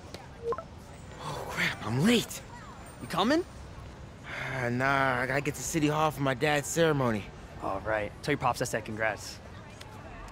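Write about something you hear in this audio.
A young man talks casually and cheerfully, close by.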